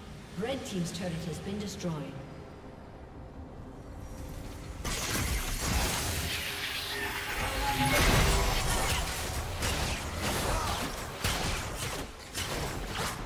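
Magical attacks crackle and burst in quick succession.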